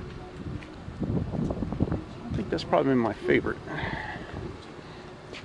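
A man talks casually nearby, outdoors.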